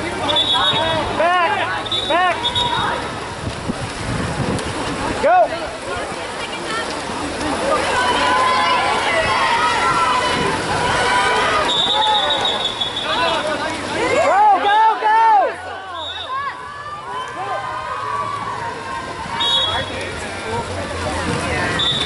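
Swimmers splash and thrash in the water of an outdoor pool.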